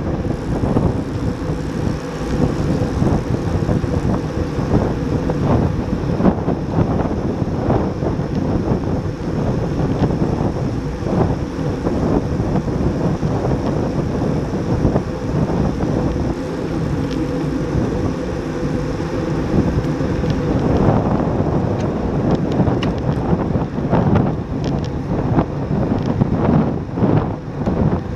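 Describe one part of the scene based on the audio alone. Bicycle tyres hum steadily on asphalt.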